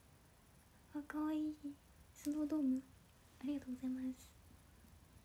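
A young woman speaks softly and sweetly, close to the microphone.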